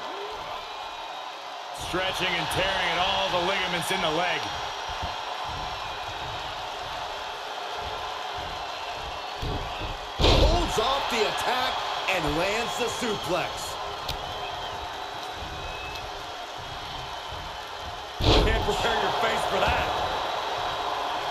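A crowd cheers and roars throughout in a large arena.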